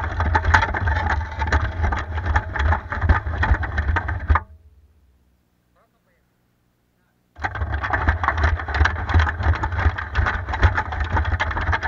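Tracks crunch and clatter over snow.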